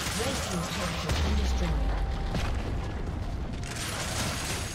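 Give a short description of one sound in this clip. A stone tower collapses with a deep rumble.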